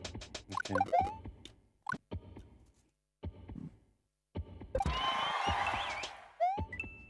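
Video game sound effects beep, chime and jingle.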